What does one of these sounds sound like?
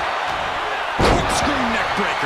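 A body slams heavily onto a wrestling ring mat with a loud thud.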